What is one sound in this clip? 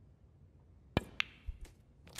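A cue strikes a snooker ball with a sharp tap.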